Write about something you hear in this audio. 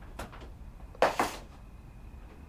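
A plastic container is set down on a counter with a knock.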